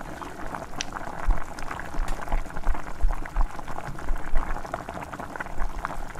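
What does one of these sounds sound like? Tea bubbles gently in a pan.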